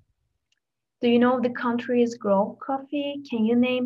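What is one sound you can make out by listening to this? A young woman speaks calmly through a microphone, as on an online call.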